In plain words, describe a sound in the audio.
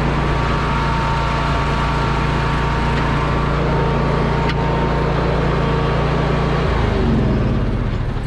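A small engine runs steadily close by, then winds down and stops.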